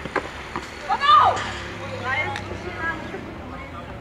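A young woman shouts on a tennis court.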